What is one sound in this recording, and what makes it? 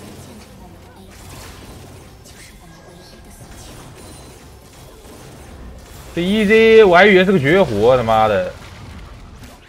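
Faint game sound effects clash and whoosh.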